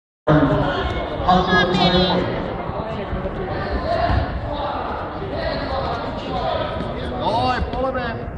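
Two grapplers scuffle and thump on a mat.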